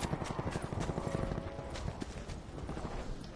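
A rifle fires a quick burst of shots.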